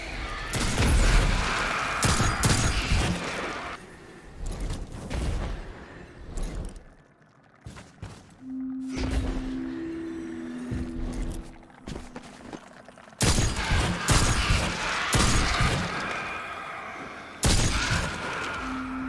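Gunshots fire in bursts with loud blasts.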